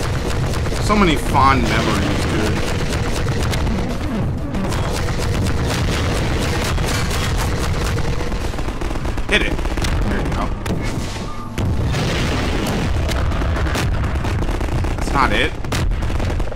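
A rocket launcher fires with a sharp whoosh.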